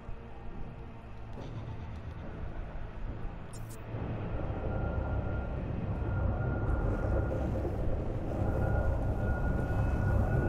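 A hovering drone hums steadily.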